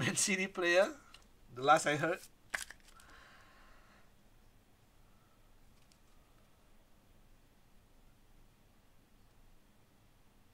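Cards slide and rustle softly between fingers.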